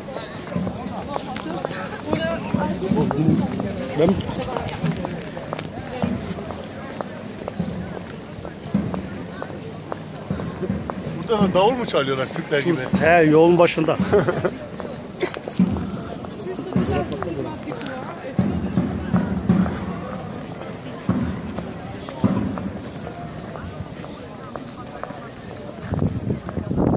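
A man talks close by, calmly and cheerfully.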